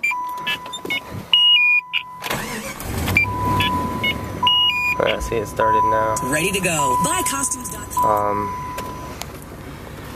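A car's warning chime beeps steadily over and over.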